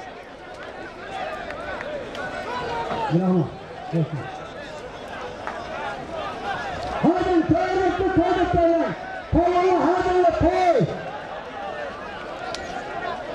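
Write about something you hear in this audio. A large crowd murmurs and shouts outdoors.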